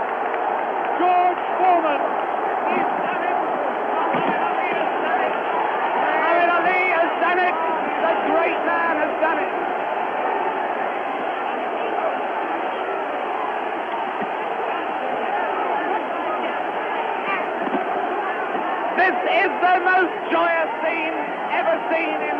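A man's voice nearby shouts excitedly over the crowd.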